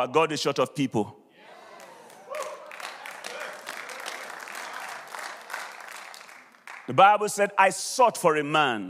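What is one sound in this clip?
A man speaks animatedly into a microphone in a large hall.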